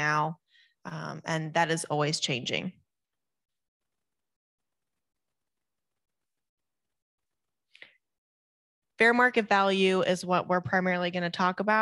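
A woman speaks calmly and clearly into a microphone, heard through an online call.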